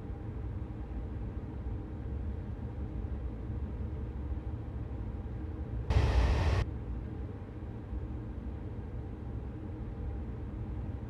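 A train engine rumbles low and steady while running along rails.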